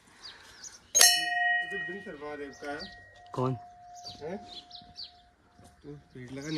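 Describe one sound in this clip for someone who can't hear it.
A metal bell is struck once and rings out, slowly fading.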